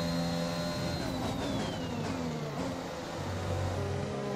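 A V6 turbo hybrid Formula One car downshifts under braking.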